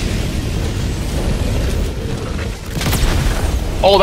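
A heavy gun fires in bursts.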